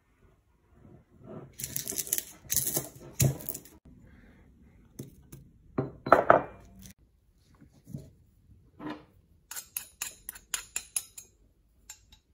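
A stone pestle grinds and knocks in a stone mortar.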